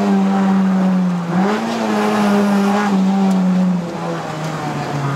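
A car engine drones loudly and rises briefly in pitch before easing off.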